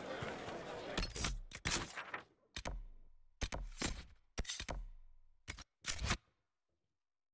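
Menu clicks sound in quick succession.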